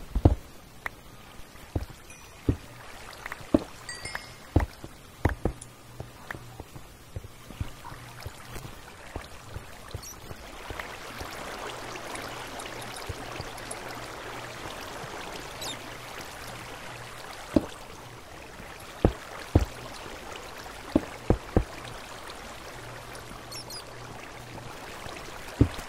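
Footsteps thud on stone at an uneven pace.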